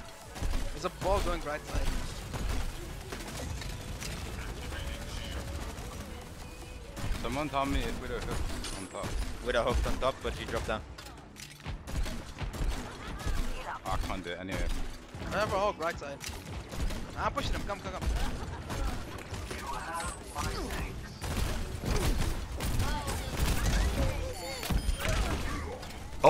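Gunfire and explosions from a game crackle and boom.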